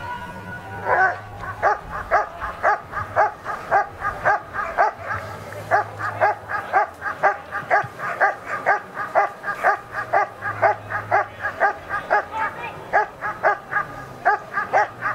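A dog barks loudly and rapidly over and over.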